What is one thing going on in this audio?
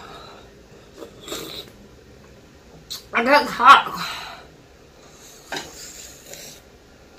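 A young woman makes wet sucking and smacking sounds on a lollipop close to a microphone.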